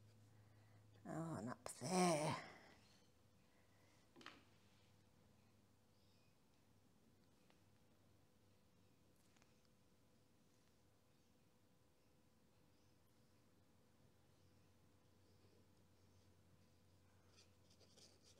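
A brush swishes softly across paper.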